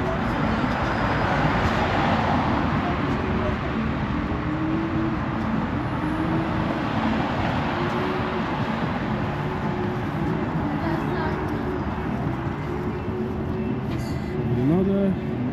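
Cars drive past on a road nearby.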